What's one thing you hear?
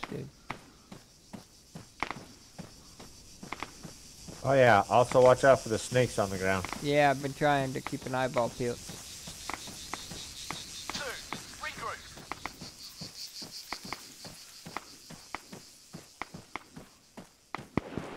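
Footsteps crunch steadily through dry grass and brush.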